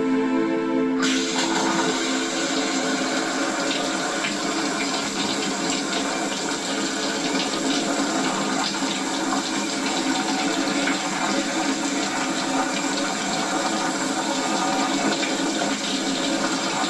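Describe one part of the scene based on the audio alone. A shower sprays water in a steady hiss.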